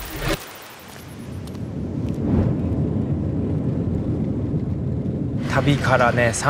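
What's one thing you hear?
A jet engine roars steadily as an airliner rolls along a runway.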